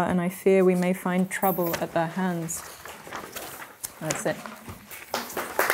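A young woman reads aloud calmly nearby.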